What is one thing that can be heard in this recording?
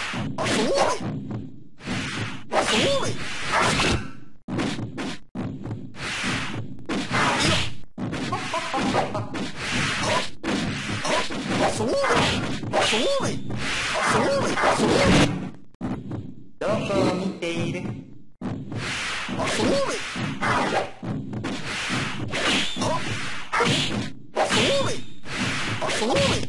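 Sword slashes and hits crack sharply in a fighting game.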